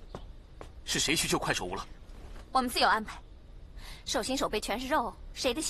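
A young woman speaks.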